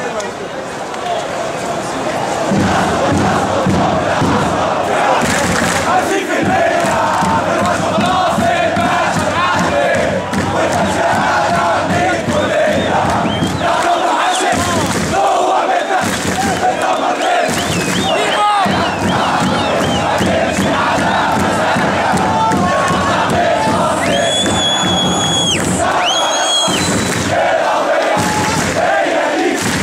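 A large crowd chants and cheers loudly outdoors.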